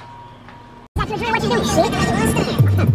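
A car engine hums and road noise fills the cabin.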